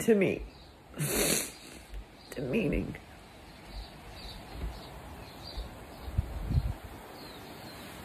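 An older woman sobs and sniffles close by.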